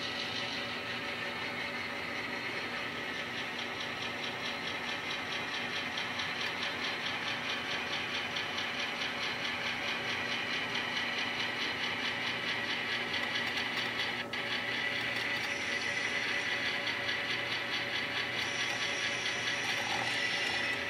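An N-scale model train whirs as it rolls slowly along its track.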